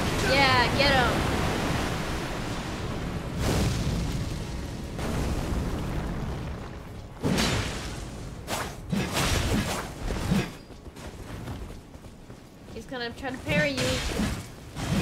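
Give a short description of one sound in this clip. A young woman talks calmly into a microphone.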